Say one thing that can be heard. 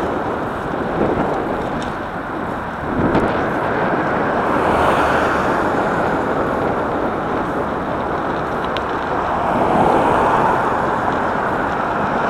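Tyres roll steadily on rough asphalt.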